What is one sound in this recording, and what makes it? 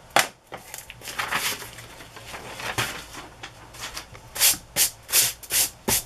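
A hand rubs and slides across a sheet of paper.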